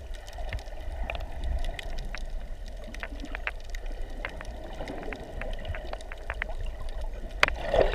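Water churns and rumbles, heard from underwater.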